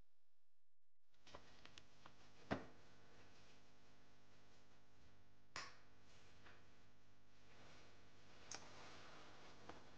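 Bedsheets rustle as a person moves in bed.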